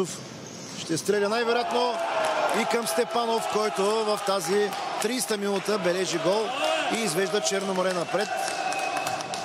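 Men shout and cheer excitedly in an echoing hall.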